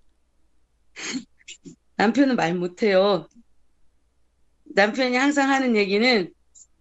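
A woman speaks cheerfully over an online call.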